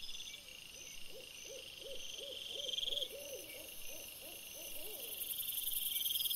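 Small animals chitter and squeal close by.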